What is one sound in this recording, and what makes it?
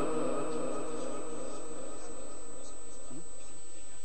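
An elderly man chants in a long, held melodic voice through a microphone.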